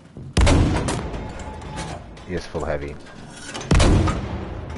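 A rifle fires a loud, booming shot.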